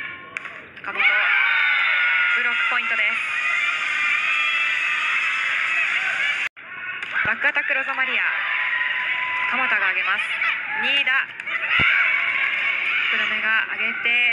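A large crowd cheers loudly in an echoing hall.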